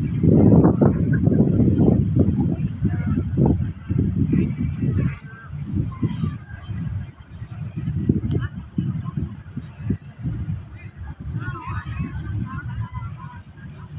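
Water laps gently in a harbour, outdoors in gusty wind.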